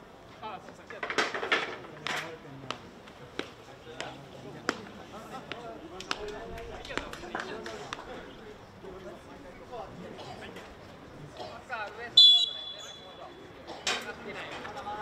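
Hockey sticks crack sharply against a ball.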